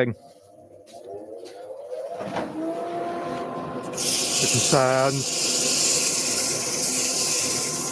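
A lathe motor hums and spins up to speed.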